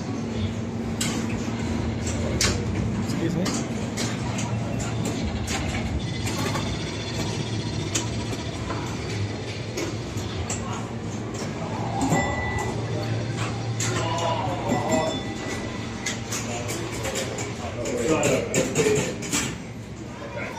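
Electronic machines hum steadily in the background.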